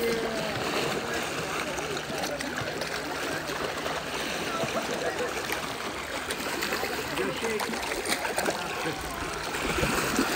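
Small waves lap against a flat rock shore.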